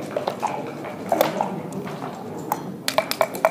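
Game pieces click and clack as a hand slides them across a board.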